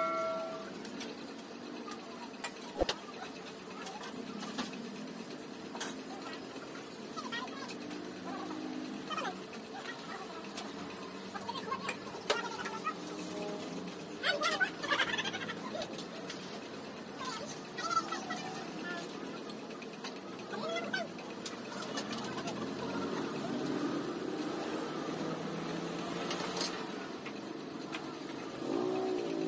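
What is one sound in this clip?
Dishes and utensils clink now and then.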